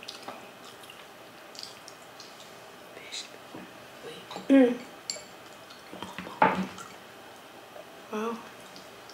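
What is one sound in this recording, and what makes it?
Women chew food with wet, crisp mouth sounds close to a microphone.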